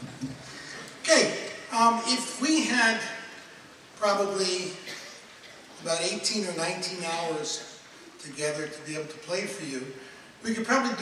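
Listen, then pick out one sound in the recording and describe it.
An elderly man speaks calmly into a microphone in a large hall.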